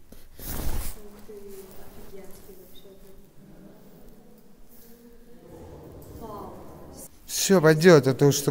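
A young man sings nearby.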